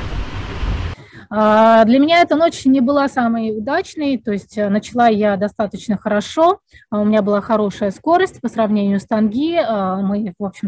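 A woman speaks calmly through an online call.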